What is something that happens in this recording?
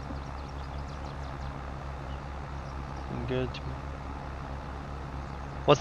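A tractor engine chugs steadily.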